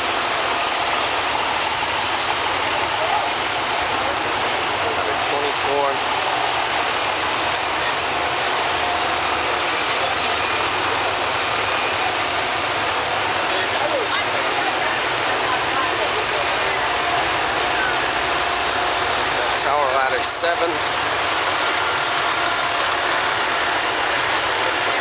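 Fire truck engines idle with a steady rumble.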